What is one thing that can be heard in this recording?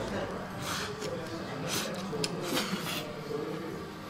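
A young man slurps noodles loudly.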